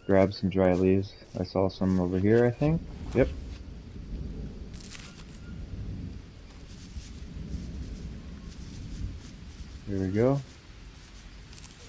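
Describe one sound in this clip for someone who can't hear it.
Palm leaves rustle as they are gathered.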